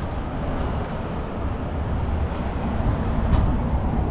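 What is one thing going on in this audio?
A van drives past on the street.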